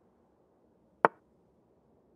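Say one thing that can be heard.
A short sharp click sounds as a chess piece is moved.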